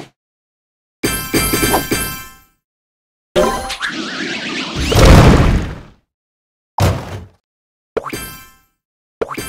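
Game tiles pop and burst with a loud blast.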